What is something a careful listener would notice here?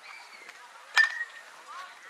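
A bat cracks against a softball.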